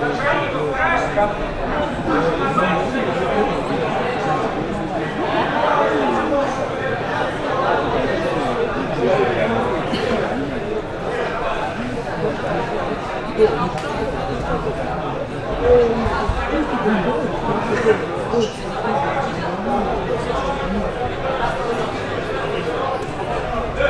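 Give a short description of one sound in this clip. A crowd of men, women and children chatters all around in a large echoing hall.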